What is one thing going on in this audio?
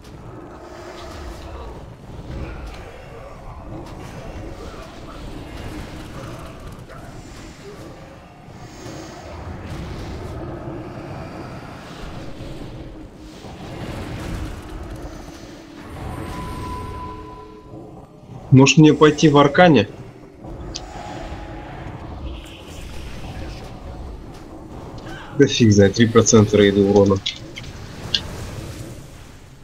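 Magic spells whoosh and crackle amid a noisy battle.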